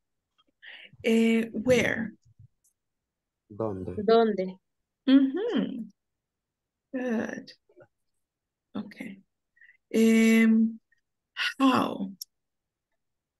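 A young woman speaks slowly and clearly over an online call, pausing between words.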